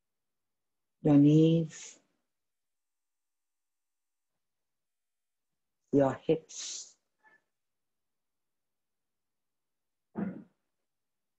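A young woman speaks calmly and softly, with long pauses, close by.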